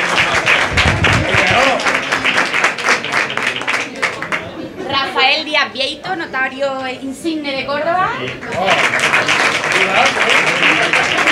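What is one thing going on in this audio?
A small group applauds in a room.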